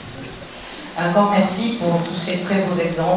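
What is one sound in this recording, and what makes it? A man speaks with animation to a large audience in an echoing hall.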